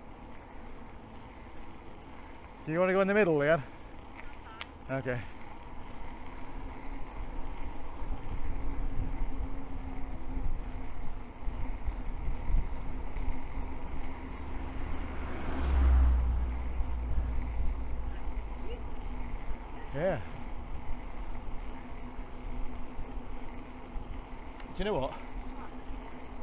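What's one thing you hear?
Bicycle tyres hum over smooth asphalt.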